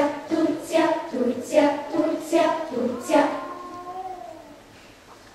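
A children's choir sings a final phrase together.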